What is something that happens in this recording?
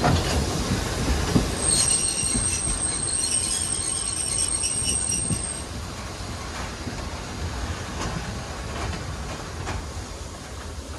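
A train rumbles along the tracks with rhythmic clacking of wheels.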